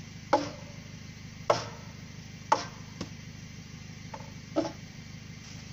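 A boot knocks hard against a wooden frame several times.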